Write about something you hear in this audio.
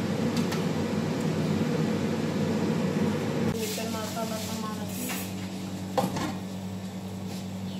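An extractor fan hums steadily.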